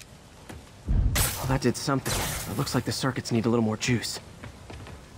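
Electric sparks crackle and burst.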